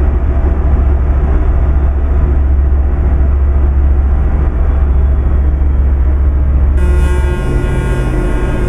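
Tyres roll and hum on a road.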